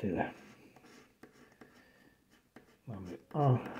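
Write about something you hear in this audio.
A coin scratches across a card.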